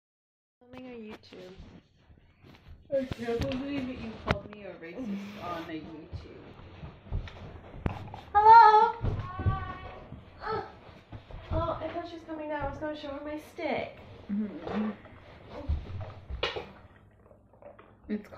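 Young women talk and laugh close by, with animation.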